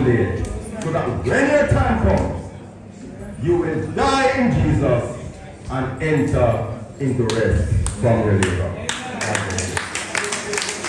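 A man speaks with animation through a microphone in a room with some echo.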